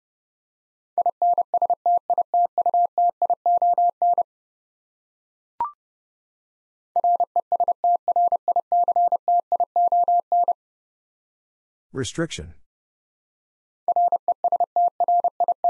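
Morse code beeps are tapped out quickly on a telegraph key in steady bursts.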